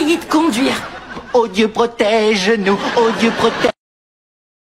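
A woman shouts and cries out with animation close by.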